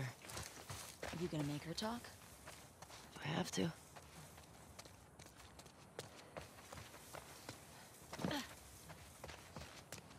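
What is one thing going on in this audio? Footsteps tread through grass and over wet pavement.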